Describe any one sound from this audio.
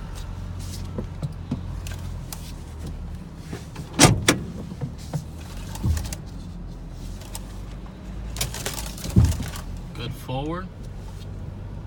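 A car drives slowly over gravel.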